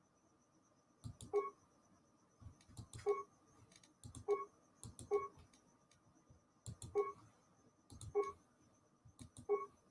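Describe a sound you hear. Short electronic clicks and beeps sound as game menu options are selected.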